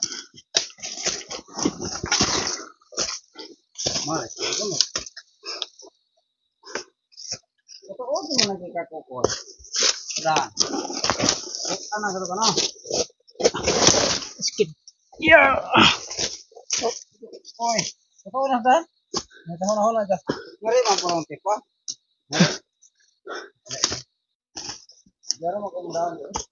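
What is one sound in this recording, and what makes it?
Leafy branches rustle as someone pushes through undergrowth.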